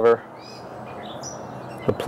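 A knife scrapes the bark of a log.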